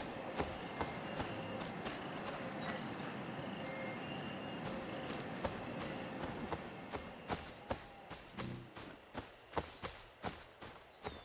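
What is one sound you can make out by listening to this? Footsteps crunch steadily through grass and undergrowth.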